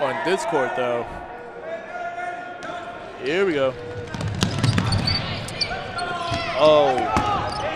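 Young men and women shout and cheer in a large echoing gym.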